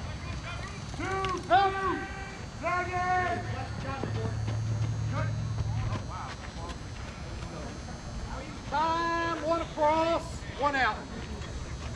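A man shouts loudly across an open field outdoors.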